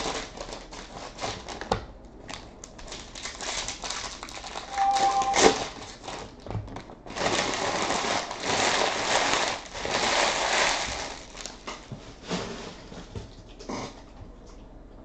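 Foil card packs crinkle and rustle loudly in hands close by.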